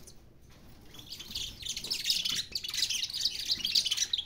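Canaries sing in rapid, high trills nearby.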